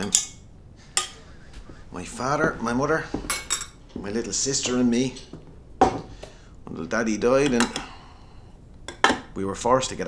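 Cups and saucers clink.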